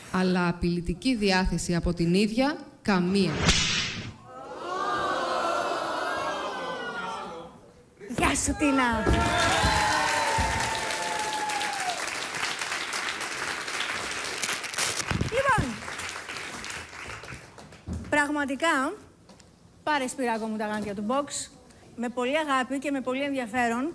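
A woman speaks with animation into a microphone.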